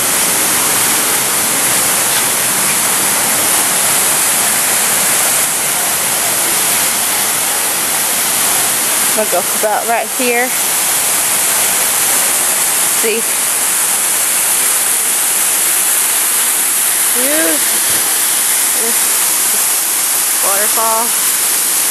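A waterfall splashes and rushes steadily outdoors.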